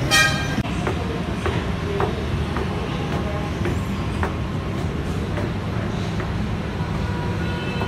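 An escalator hums as it runs.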